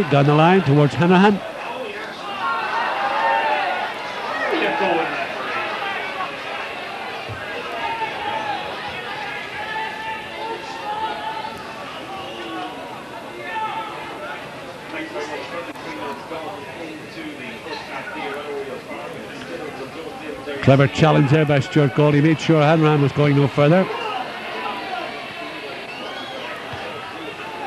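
A crowd murmurs and chants in a large open stadium.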